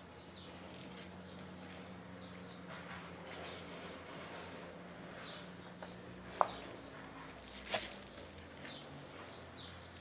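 Sandals scuff on a concrete floor.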